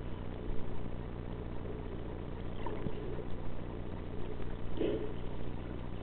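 Water rumbles in a low, muffled way, as heard from underwater.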